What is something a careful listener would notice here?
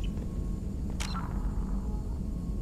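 A soft whoosh sounds as a menu closes.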